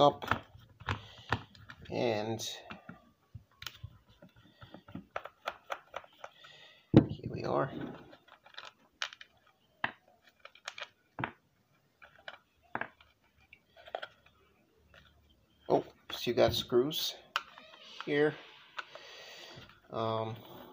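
A screwdriver clicks and scrapes as it turns small screws.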